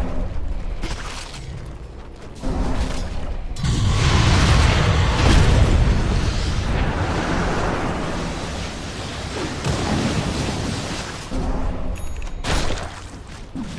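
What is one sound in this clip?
Magic blasts and clashing weapons burst loudly during a fight.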